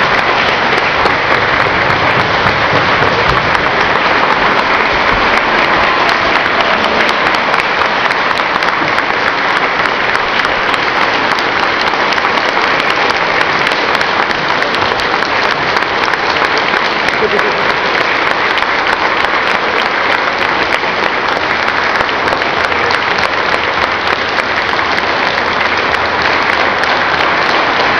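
A large crowd claps and cheers loudly in an echoing hall.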